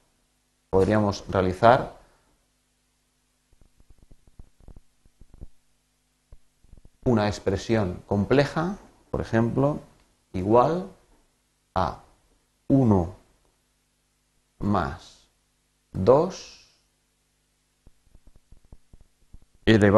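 A man talks calmly into a close microphone, with pauses.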